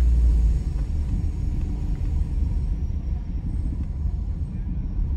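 A car engine hums low and steady while driving slowly.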